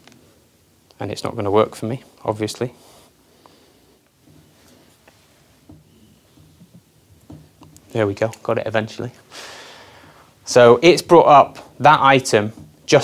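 A man speaks calmly and close to a microphone, pausing between phrases.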